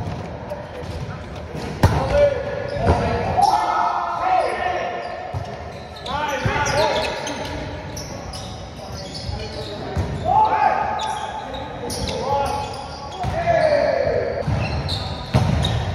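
Young men call out to each other during play.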